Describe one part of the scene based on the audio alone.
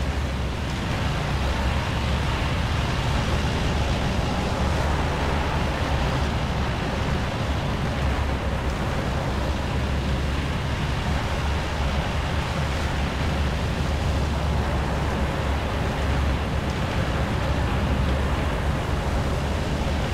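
A heavy tank engine roars steadily.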